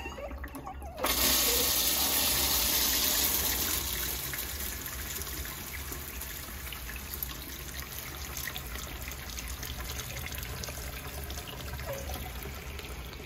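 Water sprays and splashes into a urinal bowl, loud at first and then settling to a steady hiss.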